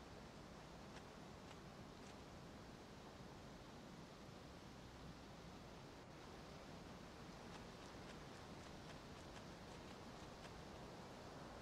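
Footsteps rustle on a forest floor.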